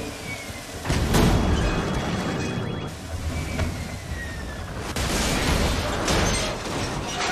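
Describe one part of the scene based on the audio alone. A vehicle crashes with a loud impact.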